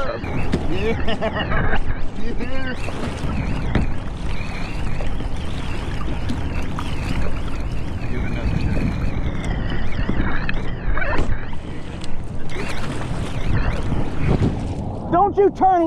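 Kayak paddles splash and dip in the water.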